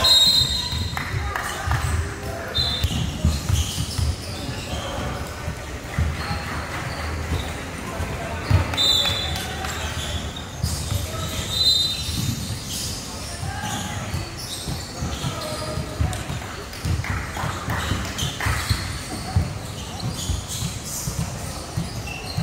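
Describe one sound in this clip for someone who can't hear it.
Young men call out to one another across an echoing hall.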